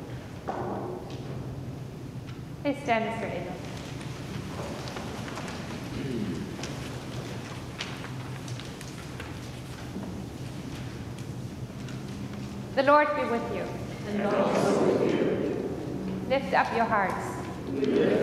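A woman chants through a microphone in a large echoing hall.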